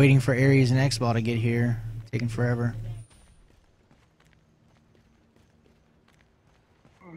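Footsteps tap softly on stone.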